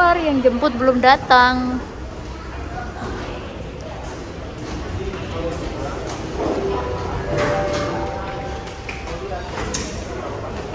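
A baggage conveyor belt hums and rattles steadily.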